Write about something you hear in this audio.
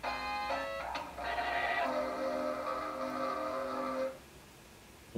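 Bleepy video game music plays loudly, then cuts off suddenly.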